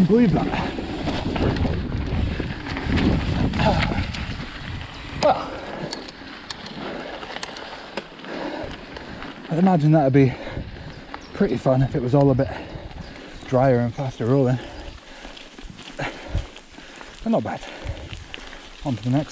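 Bicycle tyres crunch and rattle over a rough gravel track.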